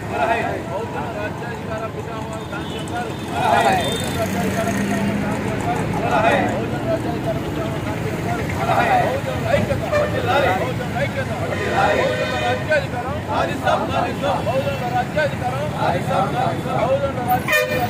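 A group of men chant slogans loudly together outdoors.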